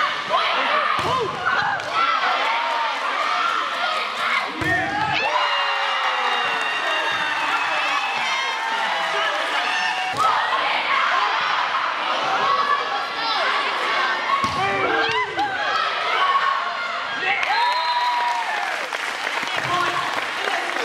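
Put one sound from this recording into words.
Volleyballs are struck with sharp slaps in a large echoing gym.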